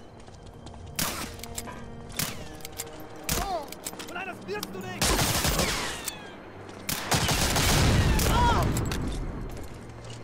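Gunshots fire in quick bursts and echo down a hard corridor.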